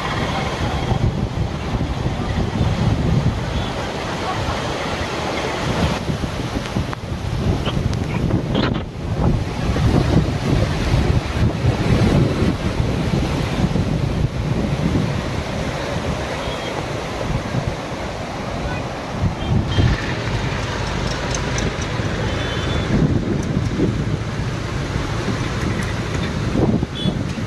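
Muddy floodwater rushes and churns loudly over rocks.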